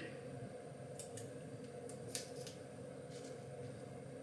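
A knife clicks softly while peeling food.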